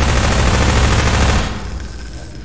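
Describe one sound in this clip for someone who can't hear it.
A submachine gun fires in rapid fire.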